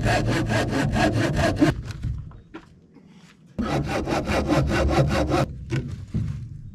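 A power sander whirs against wood.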